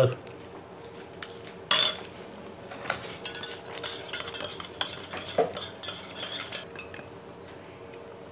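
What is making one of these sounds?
A metal spoon clinks against a cup.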